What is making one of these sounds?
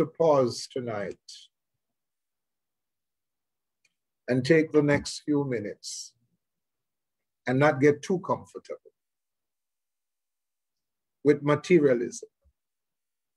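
An older man speaks calmly in short phrases over an online call.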